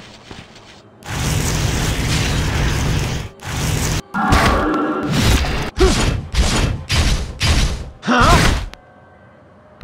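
Heavy blade strikes slash and clang in quick bursts.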